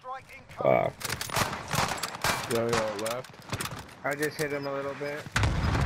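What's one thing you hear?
Rifle shots crack sharply, one after another.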